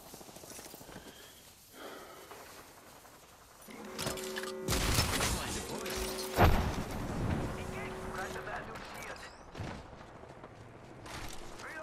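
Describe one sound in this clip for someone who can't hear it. Footsteps thud on metal and rocky ground.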